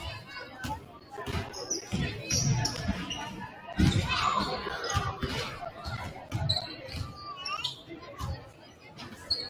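A basketball bounces with hollow thuds on a wooden court.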